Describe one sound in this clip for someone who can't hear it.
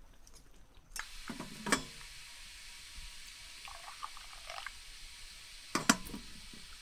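Tea pours into a glass in a steady trickle.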